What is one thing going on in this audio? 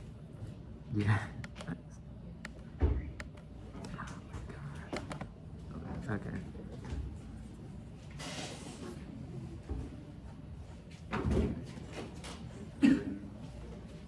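Hands bump and rustle close by.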